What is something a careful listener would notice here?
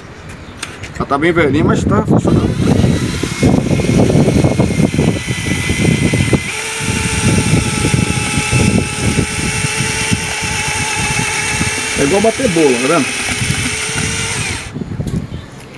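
An electric drill mixer whirs steadily, churning thick wet mortar in a bucket.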